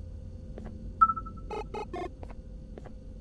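An electronic device beeps and chirps briefly.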